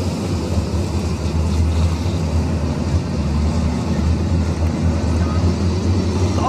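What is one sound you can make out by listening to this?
Tyres churn and spray on loose dirt.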